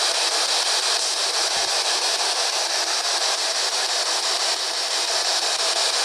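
Radio static hisses steadily from a small handheld scanner, sweeping in rapid choppy bursts.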